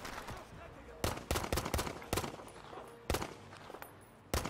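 A pistol fires single shots.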